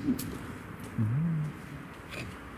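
A young man talks briefly nearby.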